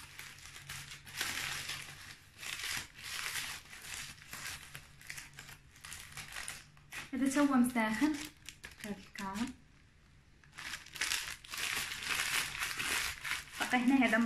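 Plastic and paper rustle and crinkle as they are handled.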